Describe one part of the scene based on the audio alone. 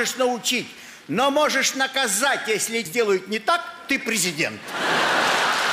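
An elderly man reads aloud into a microphone with expressive emphasis.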